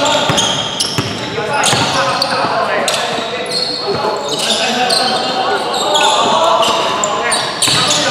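Young men call out to each other across the hall.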